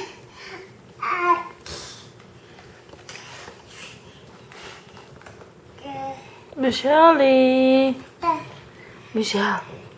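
A baby slaps and flips a cardboard book.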